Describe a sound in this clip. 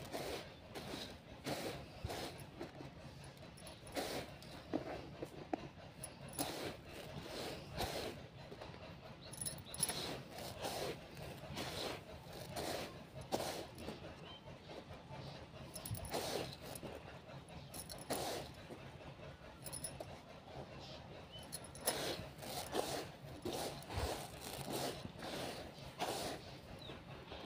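Fingers rake and rustle through dry rice grains in a metal bowl.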